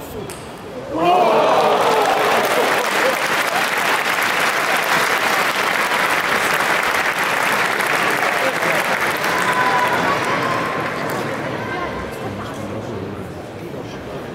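A crowd cheers and applauds loudly, then slowly dies down.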